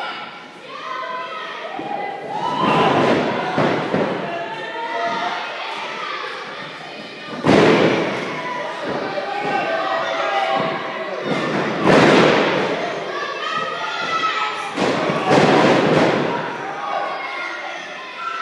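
Men in a crowd shout loudly.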